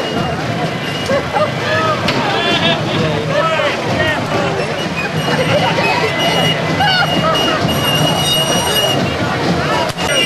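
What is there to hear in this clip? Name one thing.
A group of performers shout and chant loudly.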